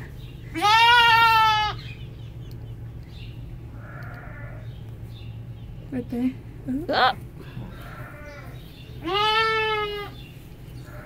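A lamb bleats loudly up close.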